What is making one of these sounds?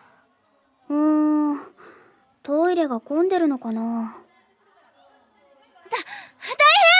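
A second young woman answers in a high, lively voice.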